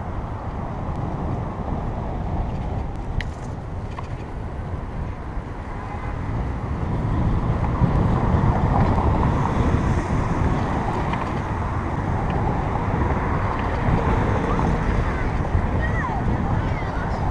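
Wind rumbles over the microphone of a moving bicycle.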